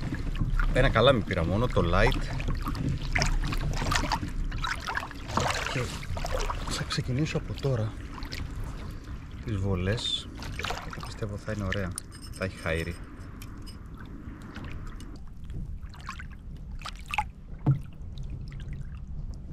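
Water laps gently against a kayak.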